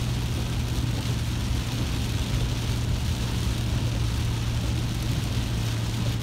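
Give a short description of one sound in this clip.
Rain patters on the windscreen.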